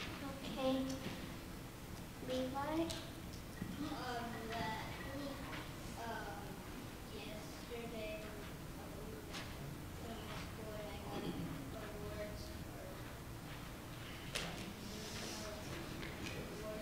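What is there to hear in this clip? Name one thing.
A young girl speaks into a microphone, heard through loudspeakers in an echoing hall.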